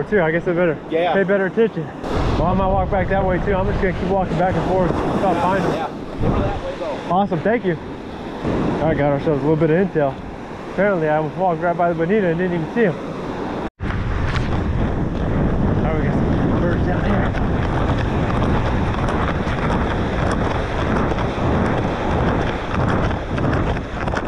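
Waves wash and break on a shore.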